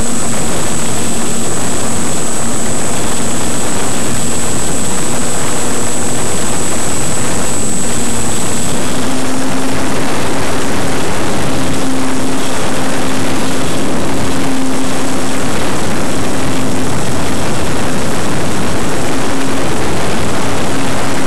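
Wind rushes loudly past a model plane in flight.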